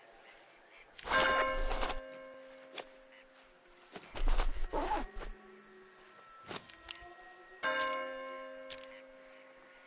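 Metal gun parts click and clank into place, with a ringing tail.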